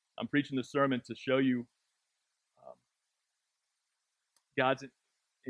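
A man speaks through a microphone, pausing between phrases.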